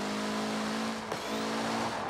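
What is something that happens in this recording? Backfire pops crackle from a car's exhaust.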